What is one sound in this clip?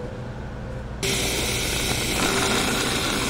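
Whipped cream hisses out of a can.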